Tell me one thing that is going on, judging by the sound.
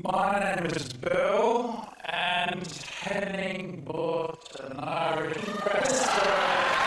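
A middle-aged man speaks into a microphone.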